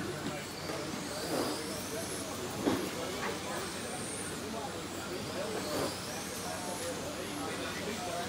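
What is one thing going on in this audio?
Model cars' tyres swish and scuff on the track.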